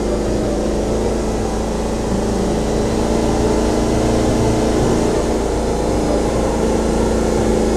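A small engine hums steadily as a forklift drives slowly.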